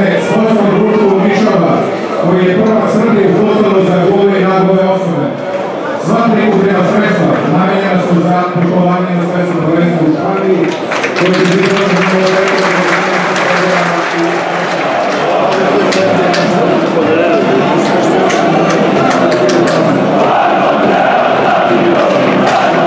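A large crowd of fans chants in unison in an open stadium.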